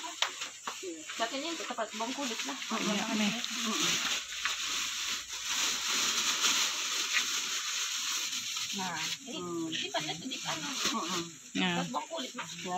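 A woman talks nearby in a casual tone.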